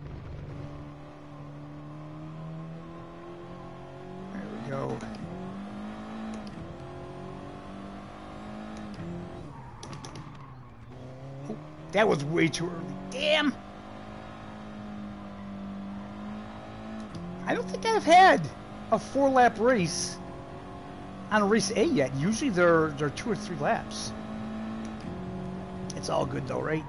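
A racing car engine drones steadily, rising and falling in pitch as it revs and shifts gears.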